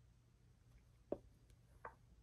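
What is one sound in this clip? A chess piece taps softly as it is set down on a board.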